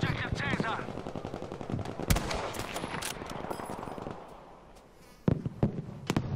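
Distant gunfire crackles.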